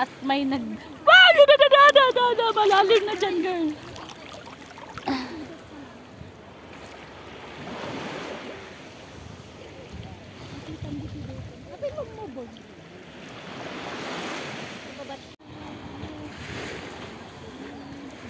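Water laps and splashes gently outdoors.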